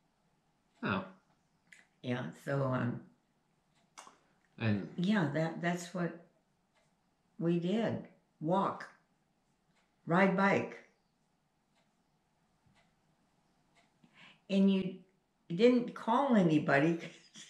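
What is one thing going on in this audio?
An elderly woman talks calmly nearby, in short phrases with pauses.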